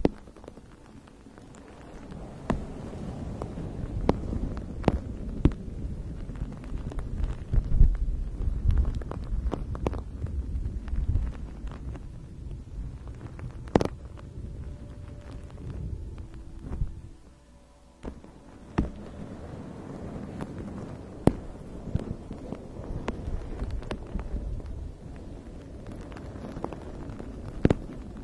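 Long fingernails tap and scratch on a hard plastic object close to a microphone.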